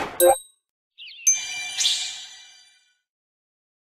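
A game tile drops into place with a soft chime.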